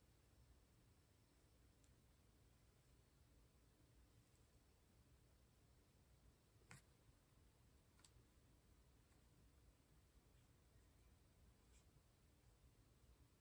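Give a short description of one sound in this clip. A brush softly strokes across paper.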